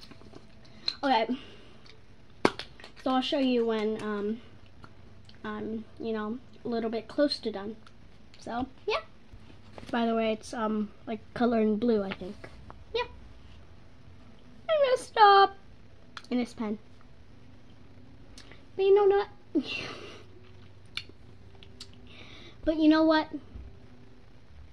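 A young girl talks close by, in short bursts with pauses.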